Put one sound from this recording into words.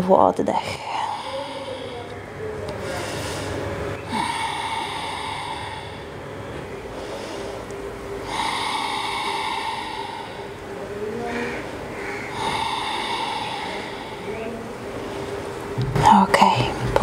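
A woman breathes deeply in and out.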